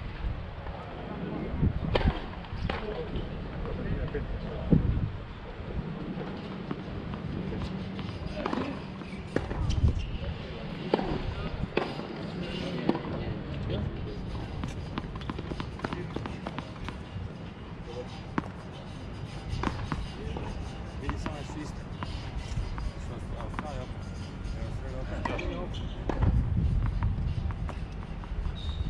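Tennis balls are struck with rackets and bounce on a hard court, with sharp pops.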